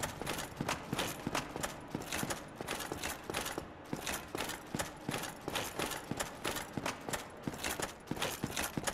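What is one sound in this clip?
Armoured footsteps run quickly over stone.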